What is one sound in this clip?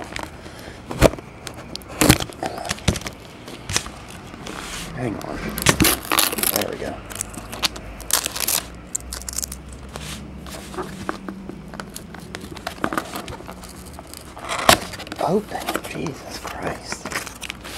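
A cardboard box knocks and taps against a table.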